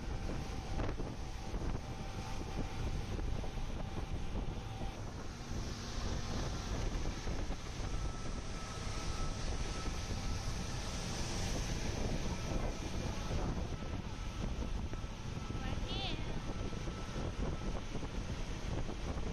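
Wind roars across the microphone on a speeding open boat.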